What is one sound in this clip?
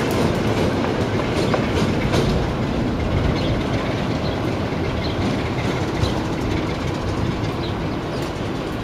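Train wheels clack and squeal on the rails.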